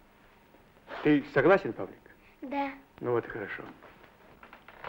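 A young boy speaks eagerly.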